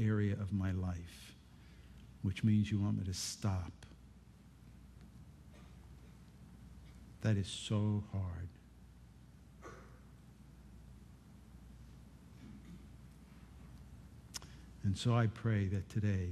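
An older man speaks slowly and solemnly into a microphone, with pauses.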